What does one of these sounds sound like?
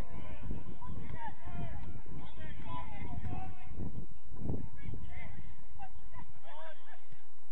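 Young players shout and call out across an outdoor pitch.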